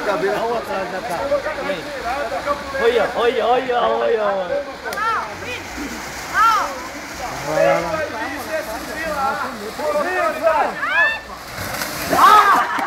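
Young men talk and shout excitedly nearby, outdoors.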